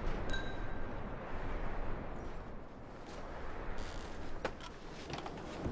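A wooden cabinet door bumps shut.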